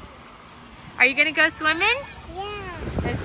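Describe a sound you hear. A little girl speaks in a high, excited voice close by.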